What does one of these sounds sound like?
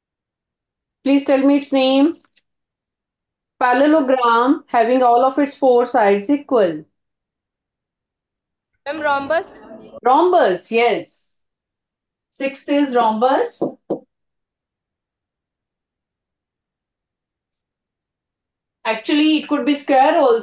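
A woman speaks calmly and clearly into a microphone, with pauses, as if teaching over an online call.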